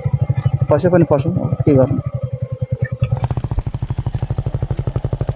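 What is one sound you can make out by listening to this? A motorcycle engine thumps steadily at low speed, close by.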